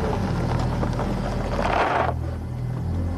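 Car tyres crunch slowly over gravel.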